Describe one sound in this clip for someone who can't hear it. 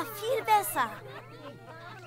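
A woman exclaims happily in a high, cartoonish voice.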